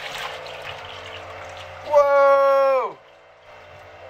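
Water drips and trickles from a lifted board into a tank.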